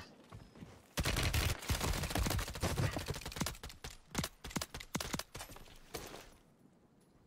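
Gunshots crack rapidly in bursts.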